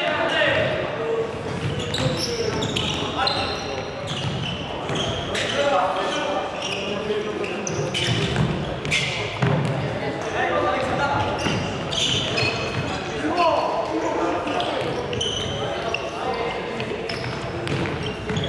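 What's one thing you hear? Sneakers squeak sharply on a hard indoor floor.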